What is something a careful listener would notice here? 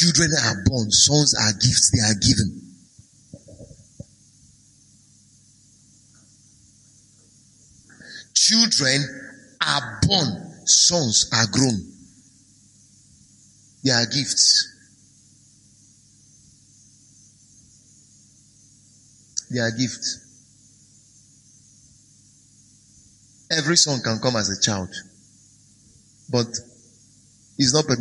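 A man preaches with animation through a microphone, in bursts with long pauses.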